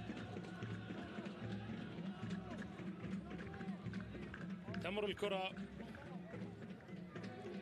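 A sparse crowd murmurs in an open stadium.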